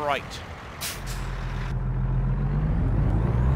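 A truck engine rumbles and slowly revs up.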